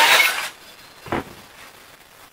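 A power saw is set down on a wooden board with a thud.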